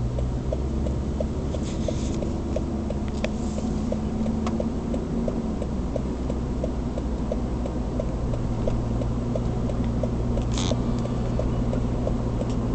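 Tyres roll on smooth asphalt.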